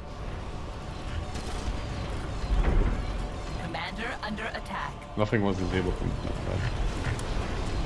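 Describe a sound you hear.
Explosions boom and rumble in a battle.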